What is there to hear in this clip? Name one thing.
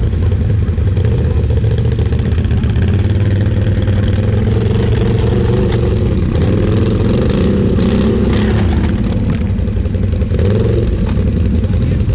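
A second quad bike engine revs as it strains to pull out of deep sand.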